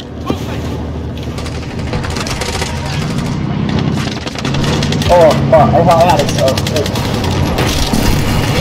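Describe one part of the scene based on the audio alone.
A heavy truck engine rumbles and roars.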